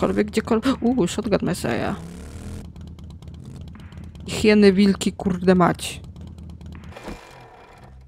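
A motorbike engine rumbles.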